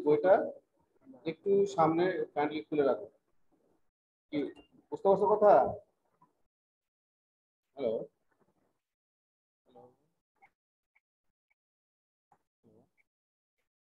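A middle-aged man speaks calmly over an online call, with pauses.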